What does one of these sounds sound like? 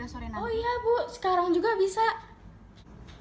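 A young woman talks with animation into a phone close by.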